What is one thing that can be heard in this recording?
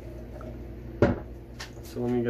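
A plastic jug is set down on a metal sink with a hollow knock.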